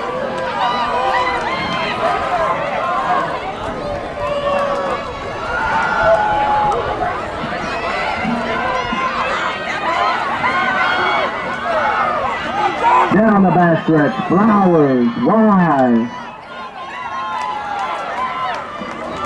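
A crowd of young people chatters and calls out nearby outdoors.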